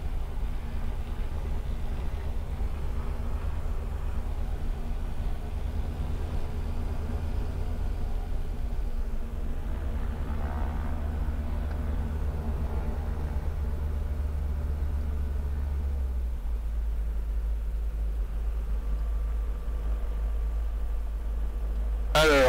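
A small plane's engine drones steadily up close.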